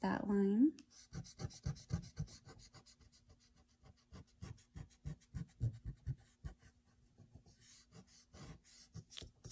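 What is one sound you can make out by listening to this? A pencil scratches across paper in short strokes.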